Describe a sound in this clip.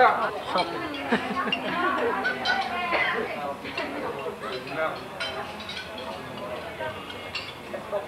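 Several young men and women chat and laugh together nearby.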